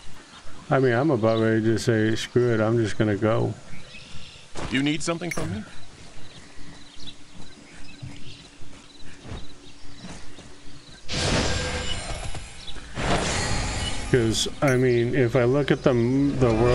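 A man talks casually and close to a microphone.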